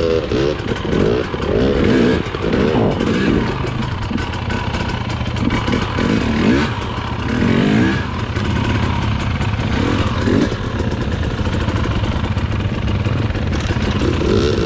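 Tyres crunch over rocks and dirt.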